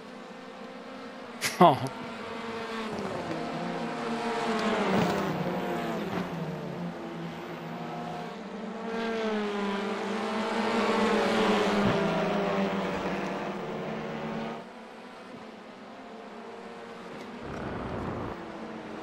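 Racing car engines roar and rev up and down as the cars speed along.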